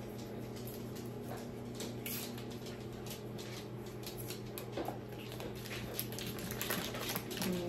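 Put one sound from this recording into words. Paper crinkles softly as a woman unwraps something.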